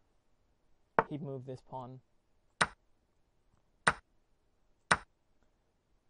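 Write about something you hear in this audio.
A short click sounds with each chess move.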